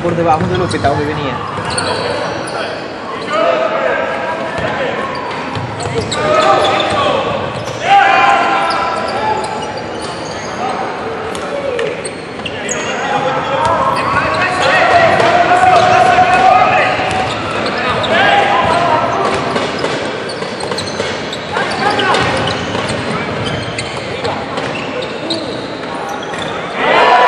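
Sneakers squeak on a hard court in an echoing hall.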